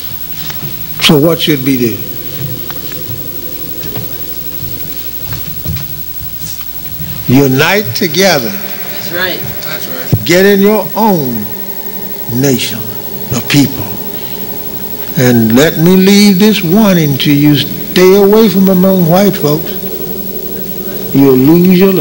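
An elderly man preaches with emphasis into a microphone, heard through loudspeakers in an echoing hall.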